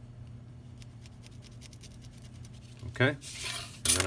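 A pen scratches along cardboard.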